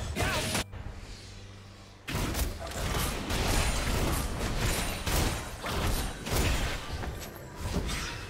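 Magic blasts and clashing blows burst in a fast video game fight.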